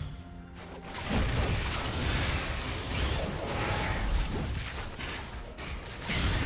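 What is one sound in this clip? Game spell effects crackle and boom in a fast fight.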